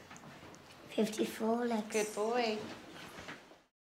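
A young boy reads out aloud in a sing-song voice nearby.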